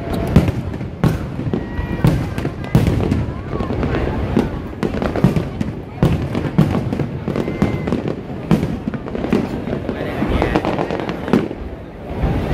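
Fireworks burst and crackle overhead in rapid booms.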